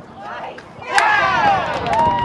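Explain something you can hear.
Young men cheer and shout loudly.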